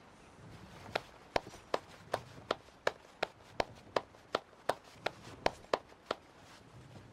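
Hands clap slowly in a steady rhythm.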